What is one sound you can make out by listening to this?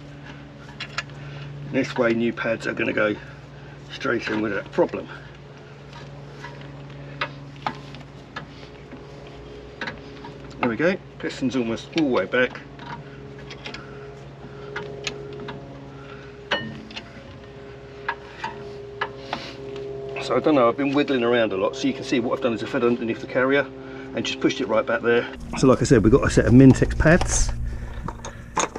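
Metal tools clink and click against a car's brake parts.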